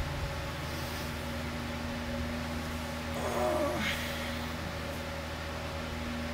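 Bedding rustles softly as a person shifts under a blanket.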